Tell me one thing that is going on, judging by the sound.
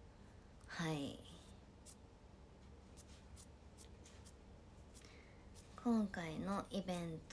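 A young woman speaks close by in a high, animated voice.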